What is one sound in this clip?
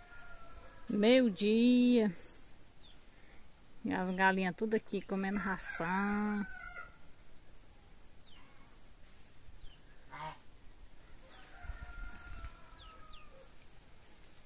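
Chickens cluck nearby outdoors.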